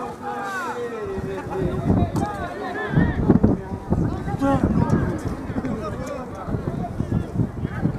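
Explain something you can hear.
Rugby players shout to each other across a field.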